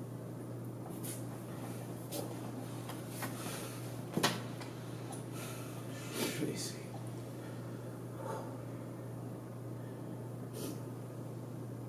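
A woman sniffles quietly while crying, close by.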